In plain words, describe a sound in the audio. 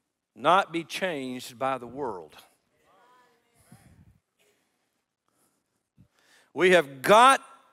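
An older man speaks with animation through a microphone in a large echoing hall.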